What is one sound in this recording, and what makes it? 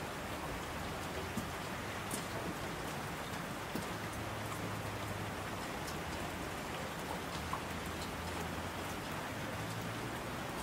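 A mountain stream rushes over rocks.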